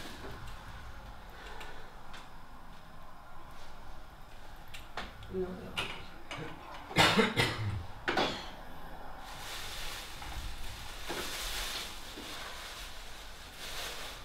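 Ceramic cups clink as they are set down on a table.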